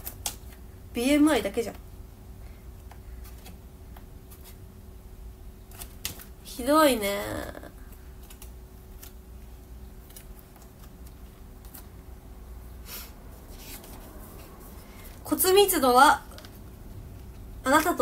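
A young woman speaks softly and close up in short bursts.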